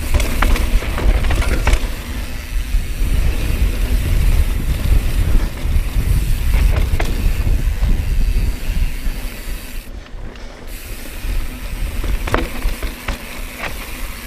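Wind rushes and buffets loudly.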